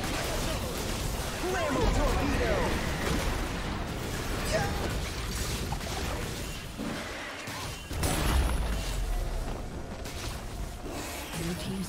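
Game spell effects and impacts crackle and boom during a fight.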